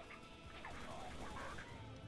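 Automatic guns fire in rapid bursts.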